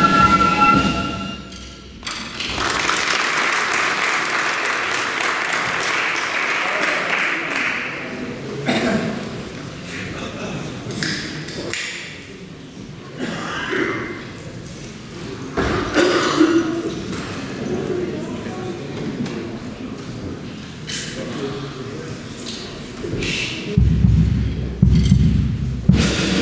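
A flute band plays a tune together.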